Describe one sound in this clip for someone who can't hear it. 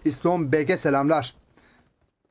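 A man speaks with animation close to a headset microphone.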